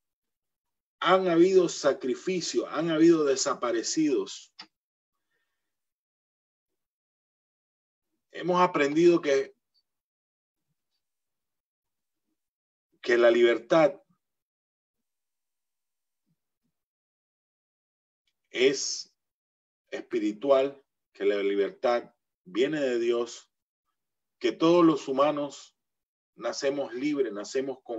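A middle-aged man speaks calmly in bursts over an online call, with long pauses.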